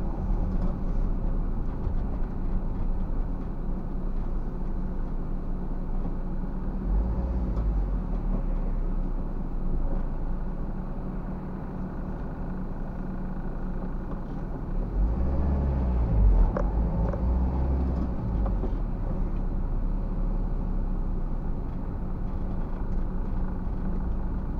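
Tyres roll over a wet road surface.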